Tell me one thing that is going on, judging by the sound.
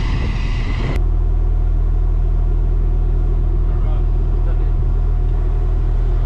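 A vehicle engine idles with a deep, steady hum up close.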